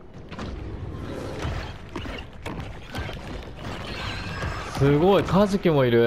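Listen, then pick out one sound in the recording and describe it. A shark bites down with a crunching thud.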